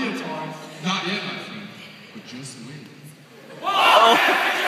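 Young performers speak on a stage in a large echoing hall.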